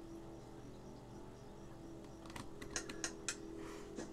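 Wooden closet doors creak open.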